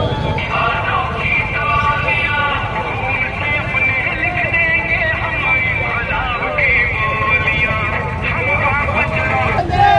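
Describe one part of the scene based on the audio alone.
A man shouts slogans through a loudspeaker.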